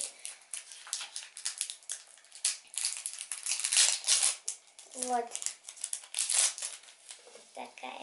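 Foil wrappers crinkle and rustle.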